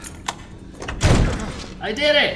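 A door bangs open with a heavy thud.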